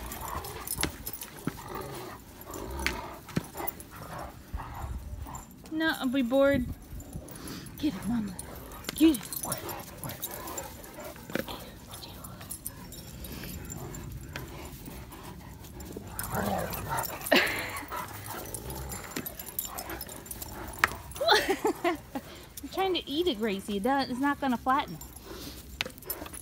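Dog paws rustle and scuff on dry grass.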